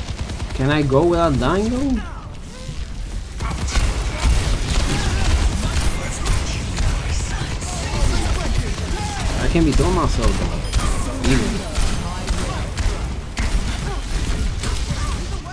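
Rapid gunfire crackles and bursts.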